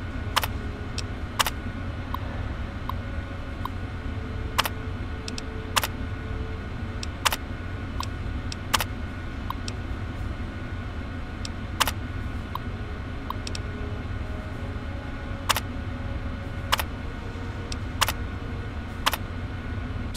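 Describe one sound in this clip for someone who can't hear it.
A computer terminal clicks and beeps sharply as text is typed out.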